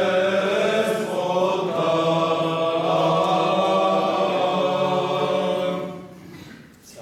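A group of voices sings a chant loudly nearby, in an echoing room.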